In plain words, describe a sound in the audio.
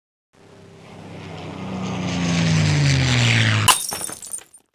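A rising whoosh swells and ends in a sharp burst.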